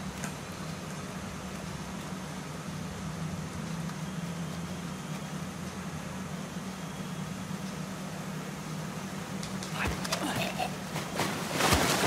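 A waterfall rushes steadily in the background.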